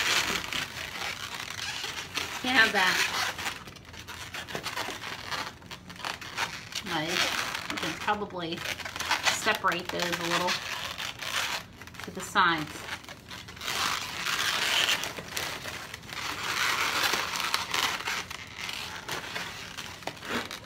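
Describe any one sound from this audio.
Balloons squeak and rub as they are twisted and handled.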